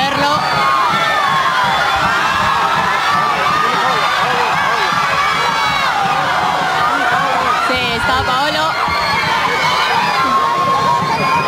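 A large crowd shouts and cheers loudly all around.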